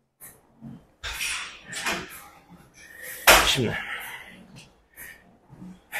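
A young man grunts and breathes hard with effort.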